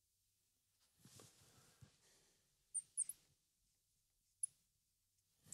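A marker squeaks and taps on a glass board.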